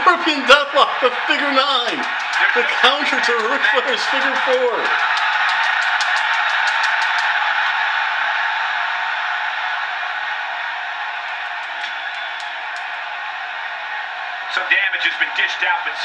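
A large crowd cheers and roars steadily in an echoing arena.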